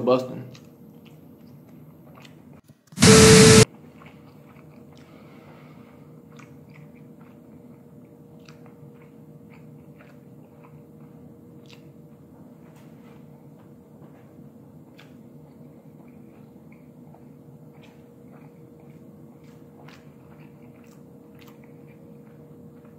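A man chews food.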